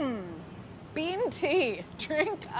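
A woman speaks cheerfully nearby.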